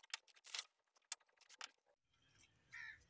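A paper sack rustles as it is pulled.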